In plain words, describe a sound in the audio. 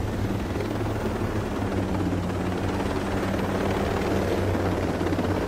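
A helicopter's rotor thumps steadily, loud and close.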